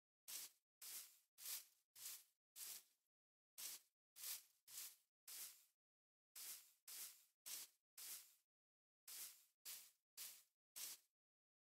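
Footsteps crunch on hard ground at a steady walking pace.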